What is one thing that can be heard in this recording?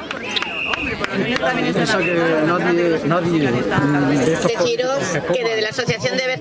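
A crowd of men and women chants loudly outdoors.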